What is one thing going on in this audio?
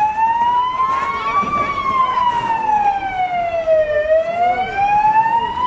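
A siren wails nearby, slowly rising and falling in pitch.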